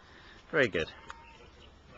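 A small dog barks twice up close.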